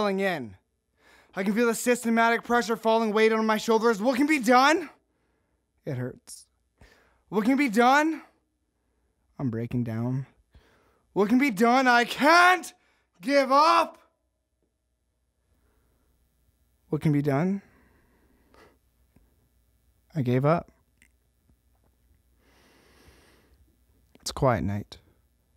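A young man sings close to a microphone in short phrases, with pauses between them.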